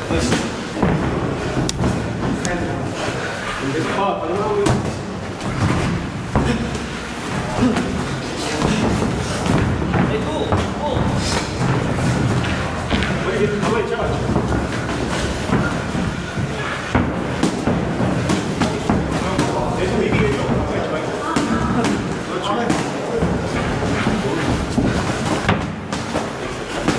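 Boxing gloves thud against each other and against padded headgear.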